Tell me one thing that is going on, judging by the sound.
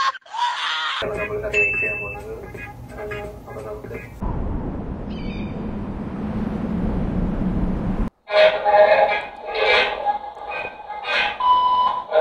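A young man talks with animation over an online call.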